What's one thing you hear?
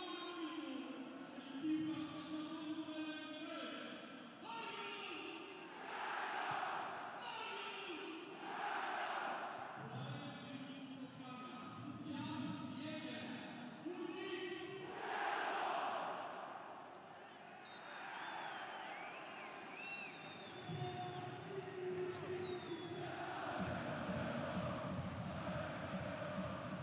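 A large stadium crowd roars and chants.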